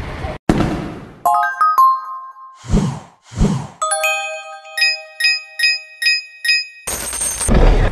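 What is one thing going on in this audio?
Bright chiming tones ring out in quick succession.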